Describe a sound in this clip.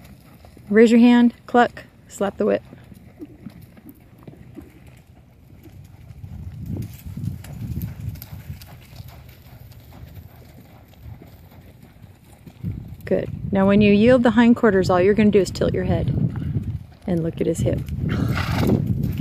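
A horse's hooves thud softly on dirt.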